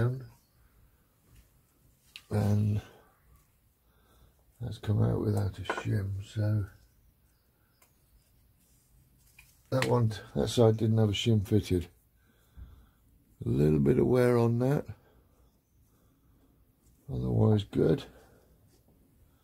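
Metal parts clink softly as they are handled.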